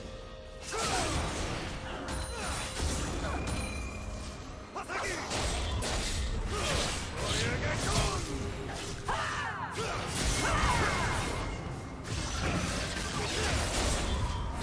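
Game weapons clash and strike.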